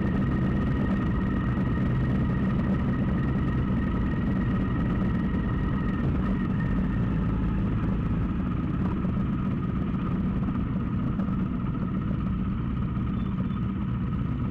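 A motorcycle engine hums steadily close by as the rider cruises.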